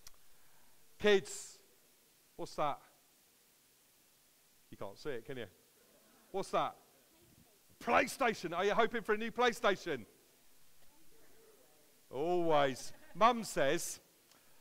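A middle-aged man talks with animation.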